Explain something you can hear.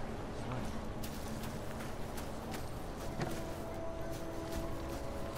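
Footsteps crunch over rubble and dry leaves.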